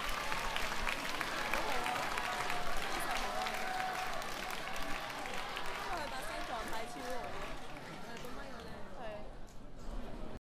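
A large crowd cheers, whistles and shouts loudly.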